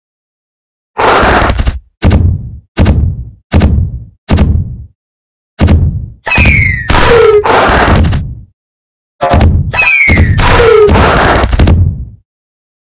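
A heavy block slams down again and again with booming thuds.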